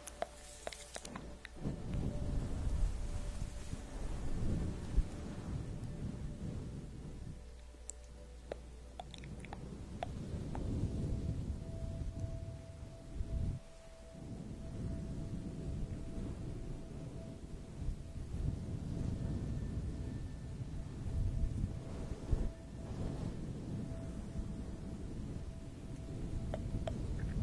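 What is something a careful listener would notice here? A young woman whispers softly and closely into a microphone.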